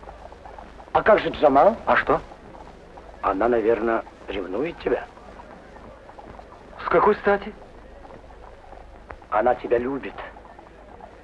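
A younger man answers in short phrases.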